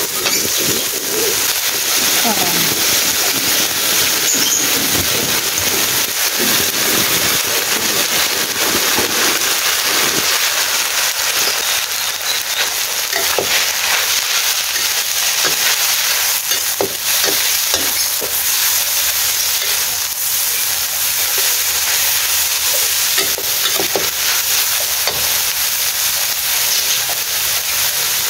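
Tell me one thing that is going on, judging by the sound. Food sizzles loudly in a hot wok.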